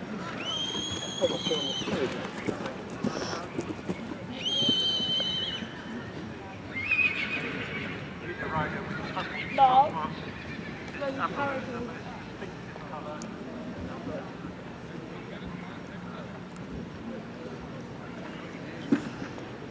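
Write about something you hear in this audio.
Hooves thud on grass as a horse canters.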